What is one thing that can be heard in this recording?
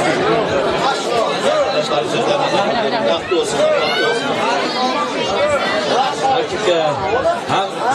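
A young man speaks loudly into a microphone, heard through loudspeakers.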